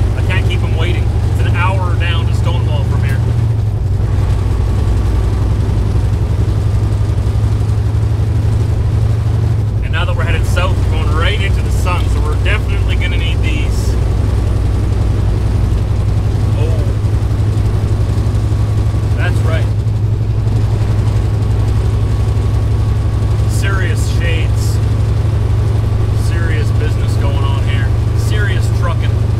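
A man talks calmly and conversationally, close by.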